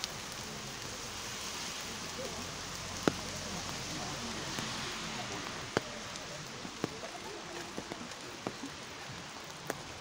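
Light rain falls steadily outdoors.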